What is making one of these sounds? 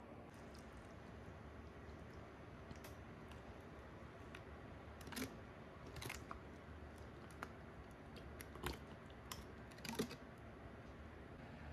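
A thick sauce glugs and splashes as it pours from a bottle onto noodles.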